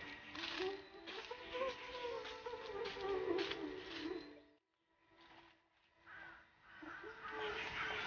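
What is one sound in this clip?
A woman's footsteps crunch on dry leaves.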